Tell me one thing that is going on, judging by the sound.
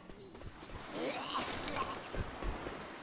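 A zombie growls and moans.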